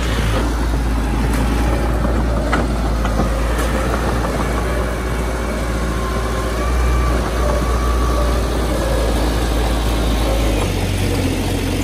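Soil and stones scrape under a bulldozer's blade.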